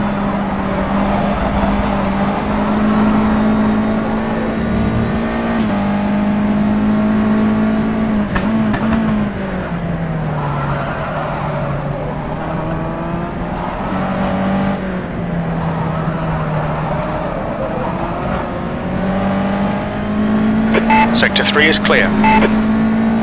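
A racing car engine roars steadily, its pitch rising and falling as it shifts gears.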